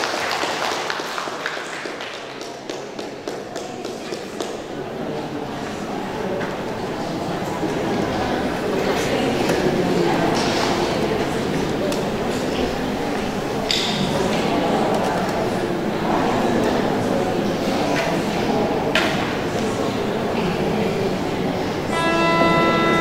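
A group of young children recite together loudly in an echoing hall.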